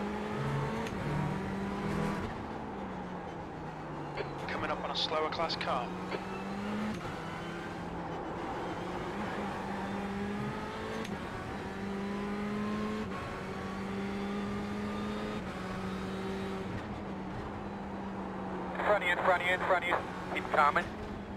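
A racing car engine drones and shifts pitch through gear changes.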